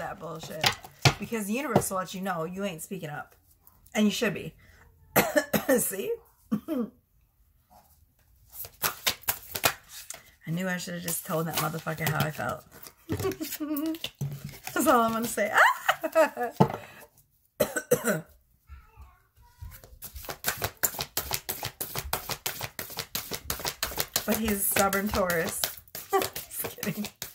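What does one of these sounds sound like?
A woman talks calmly and with animation, close by.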